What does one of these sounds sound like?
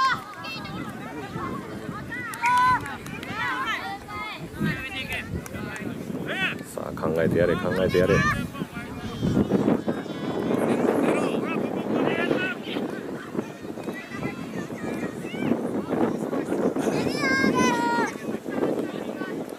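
Children shout and call out across an open field outdoors.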